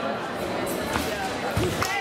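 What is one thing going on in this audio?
Fencing blades clink together.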